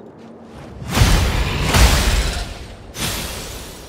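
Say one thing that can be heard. A fiery blast roars in a burst of flame.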